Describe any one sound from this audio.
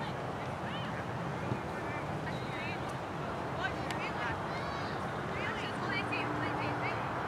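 Young women call out to each other across an open field, far off.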